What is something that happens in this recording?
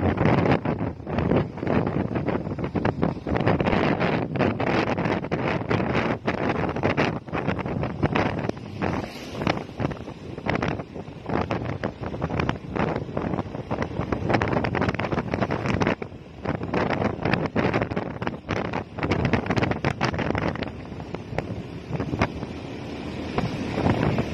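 A motorcycle engine hums steadily close by while riding.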